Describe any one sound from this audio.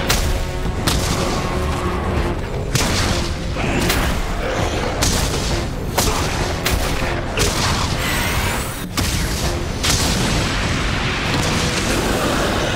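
A giant monster roars loudly.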